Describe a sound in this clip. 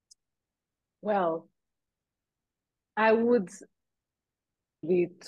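A woman speaks with animation in short bursts over an online call.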